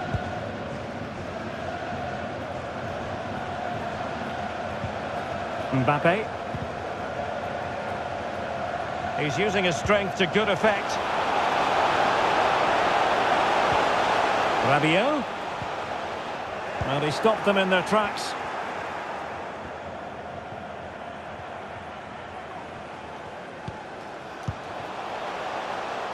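A large stadium crowd roars steadily and swells into loud cheering.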